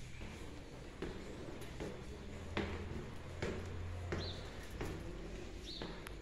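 Footsteps climb concrete stairs.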